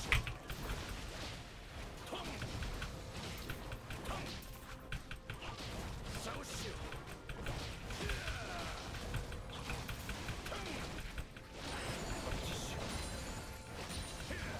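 Video game fight effects crackle and burst.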